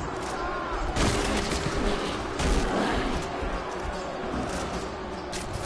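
Gunshots bang loudly.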